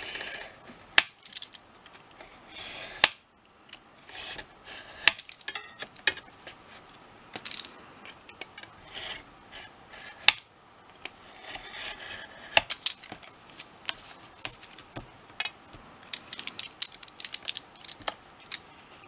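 Card and a metal ruler tap and click on a cutting mat.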